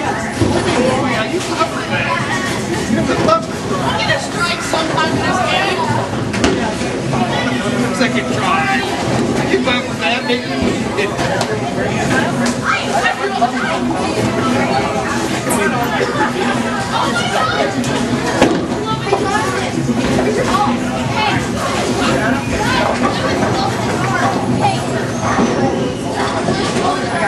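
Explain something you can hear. A crowd of people chatters loudly in a large echoing hall.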